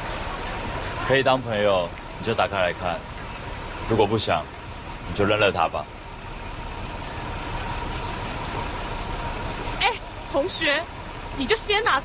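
A young man speaks softly and earnestly up close.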